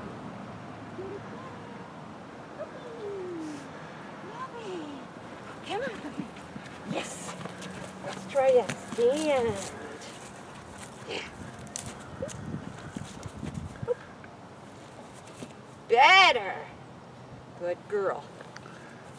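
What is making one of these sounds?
A woman talks to a dog in a bright, encouraging voice, nearby outdoors.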